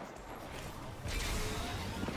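A hover bike engine roars as the bike speeds off.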